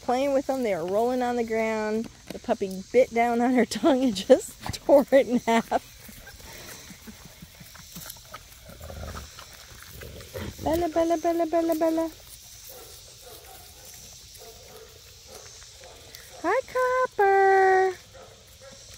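Puppies whine and yelp in high, wavering cries.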